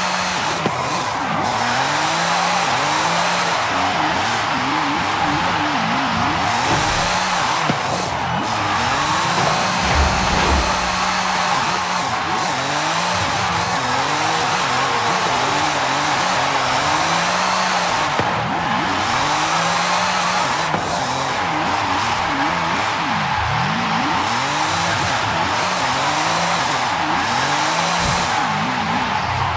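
Tyres squeal steadily on tarmac.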